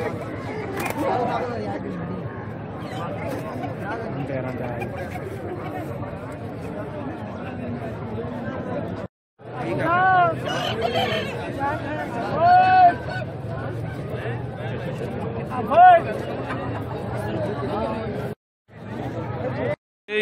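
A crowd of men chatters and talks nearby outdoors.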